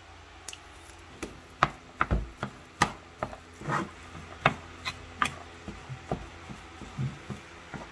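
A wooden spoon mixes meat in a plastic bowl.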